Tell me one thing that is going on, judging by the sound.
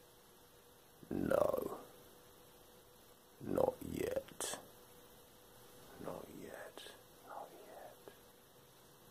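A man speaks quietly and slowly, close by, with pauses.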